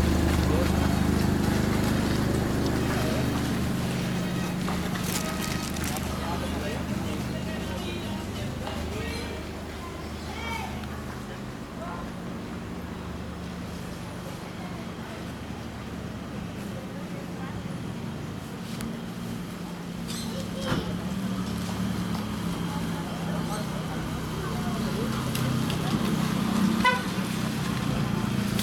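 A car engine hums steadily close by.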